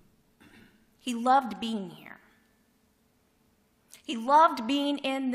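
A woman speaks calmly into a microphone in an echoing room.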